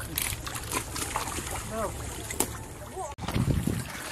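Water splashes in shallow mud.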